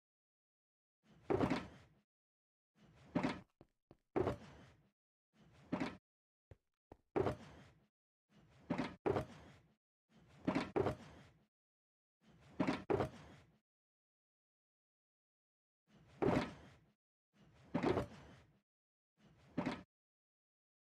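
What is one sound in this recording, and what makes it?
Blocks thud softly as they are placed.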